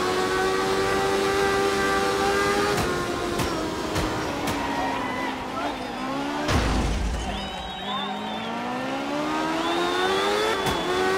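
A car engine revs high, dropping and climbing in pitch as the gears change.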